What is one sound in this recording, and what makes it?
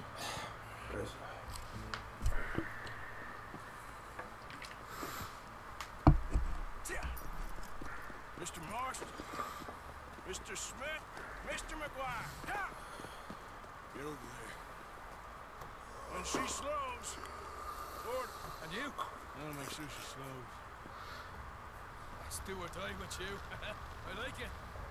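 A man speaks in a low, gruff voice close by.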